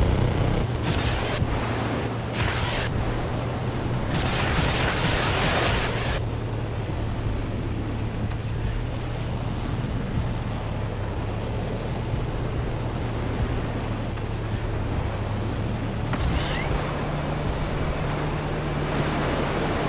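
Water splashes and sprays around a speeding boat.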